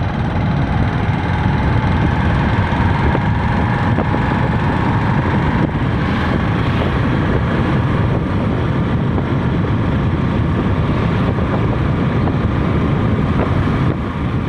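A vehicle's engine hums steadily as it drives along a road.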